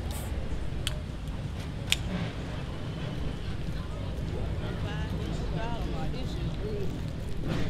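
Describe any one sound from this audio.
Several adults talk nearby outdoors.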